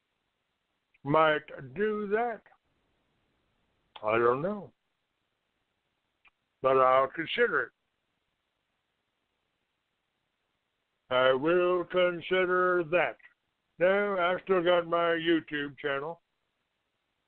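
A man speaks with animation, heard through a phone line, in short bursts with pauses.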